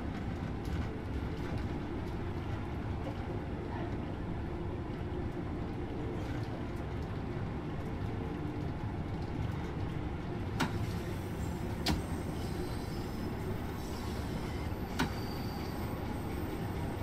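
A train rumbles steadily along the tracks through a tunnel.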